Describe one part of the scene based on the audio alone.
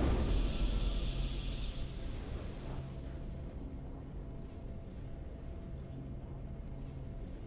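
Triumphant fanfare music plays.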